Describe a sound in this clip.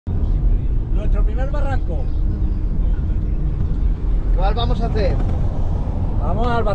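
Men talk and laugh close by inside a car.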